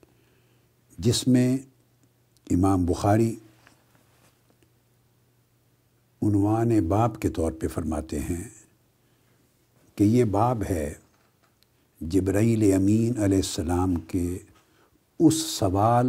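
An elderly man speaks calmly and clearly into a close microphone, in short phrases with pauses.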